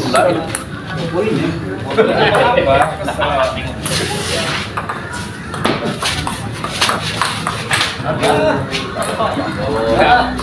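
A ping-pong ball clicks back and forth off paddles and a table.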